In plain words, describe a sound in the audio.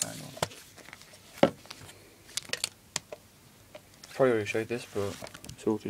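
Plastic cases click and rattle as a hand flips through them.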